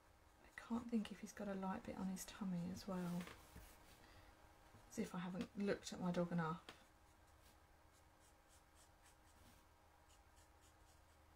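A felt-tip marker scratches across card.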